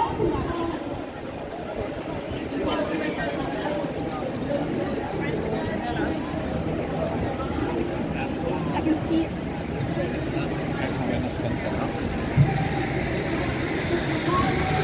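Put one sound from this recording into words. A busy crowd of many people chatters outdoors.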